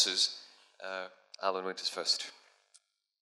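A man speaks into a handheld microphone.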